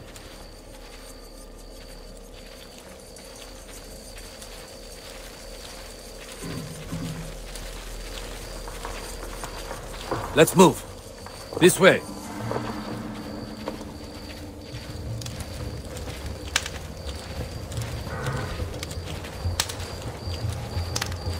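Footsteps crunch on dry grass and dirt.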